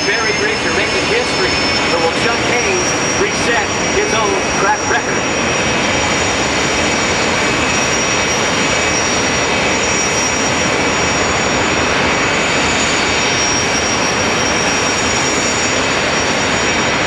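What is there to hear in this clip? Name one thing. Dragster engines roar loudly and steadily, heard outdoors.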